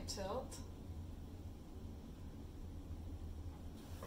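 A plastic cup is set down on a tray with a light knock.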